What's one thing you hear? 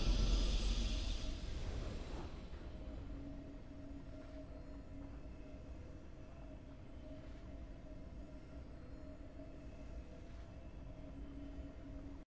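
A bright victory fanfare rings out and fades into a soft, steady drone.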